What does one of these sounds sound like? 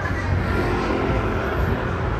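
A motorbike engine hums past close by.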